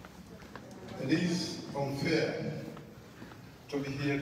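A man speaks over loudspeakers in a large, echoing hall.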